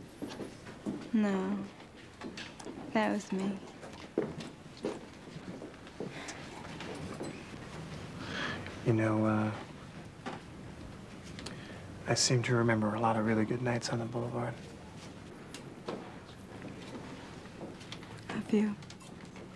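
A woman speaks quietly and softly nearby.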